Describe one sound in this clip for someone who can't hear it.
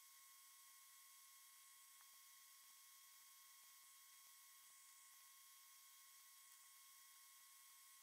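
Metal tweezers tick faintly against small parts on a circuit board.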